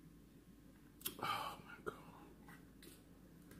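Crispy fried fish crunches as a woman bites into it.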